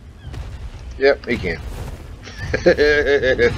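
A large bird screeches loudly.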